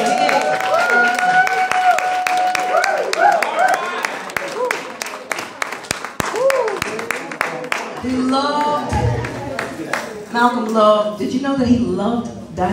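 A jazz band plays with a drum kit and double bass.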